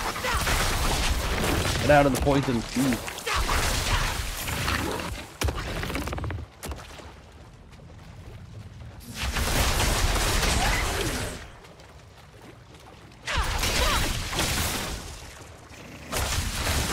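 Magic blasts crackle and boom in a fierce fight.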